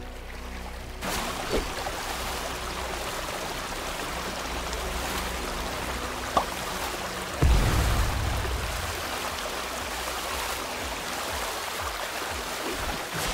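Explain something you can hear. Water rushes and splashes steadily as something speeds across it.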